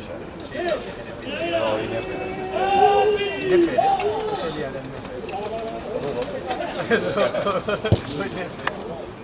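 Men shout calls to each other outdoors across a sports field.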